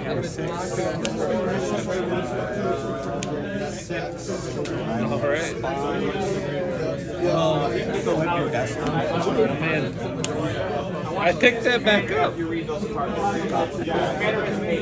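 Playing cards slide and tap on a tabletop.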